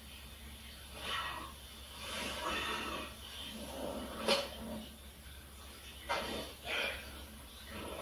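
A young man talks nearby, heard through a television.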